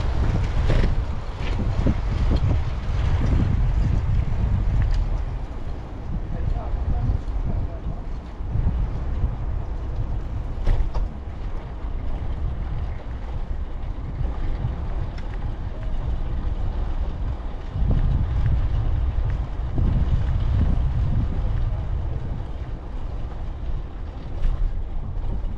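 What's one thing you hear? Wind rumbles and buffets loudly past a microphone outdoors.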